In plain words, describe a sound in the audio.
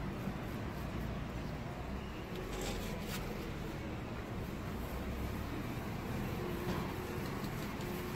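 A gloved hand rustles against a plastic sheet.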